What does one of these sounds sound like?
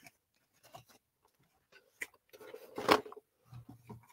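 Small cardboard boxes knock and scrape softly as they are picked up one by one.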